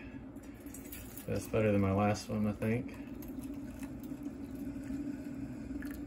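Water pours from a carafe into a metal mug.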